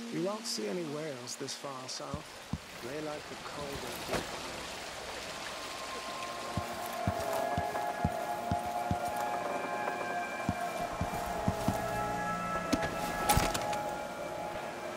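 Footsteps tap on hard floors.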